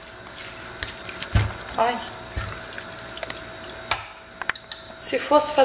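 A spatula scrapes and clacks against a pan of stew.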